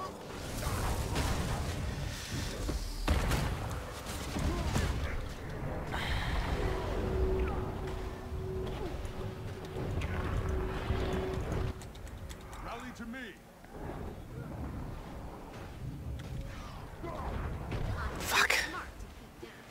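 Spells and weapons clash and burst with crackling magical blasts.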